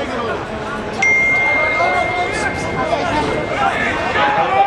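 A referee's whistle blows one long blast.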